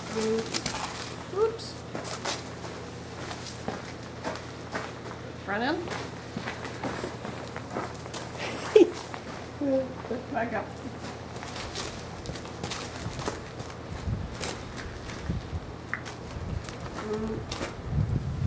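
A woman speaks softly to a horse nearby.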